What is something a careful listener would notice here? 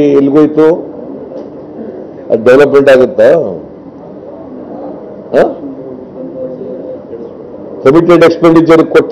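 A man speaks into microphones in short bursts with pauses.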